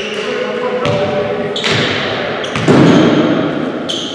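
A basketball bounces on a wooden floor in an echoing gym.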